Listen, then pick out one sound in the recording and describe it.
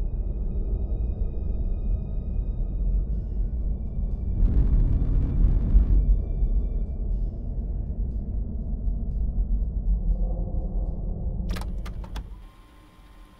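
A spaceship's engines rumble deeply and steadily, then cut off.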